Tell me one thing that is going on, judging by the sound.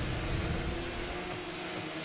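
A rocket boost roars.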